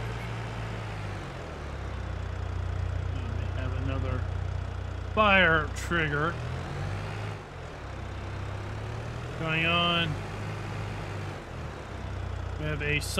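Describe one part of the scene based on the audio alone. A small vehicle engine hums steadily as it drives.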